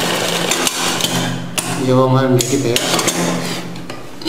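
A sewing machine runs, stitching fabric.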